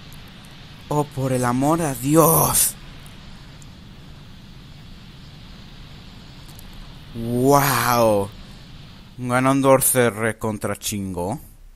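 A young boy shouts with effort.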